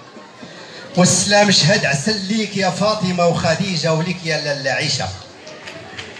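A man talks close by, loud and animated.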